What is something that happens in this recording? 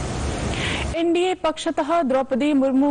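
A young woman reads out the news calmly into a microphone.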